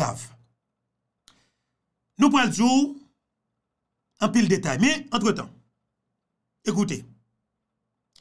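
A man speaks calmly and close into a microphone, in short phrases with pauses.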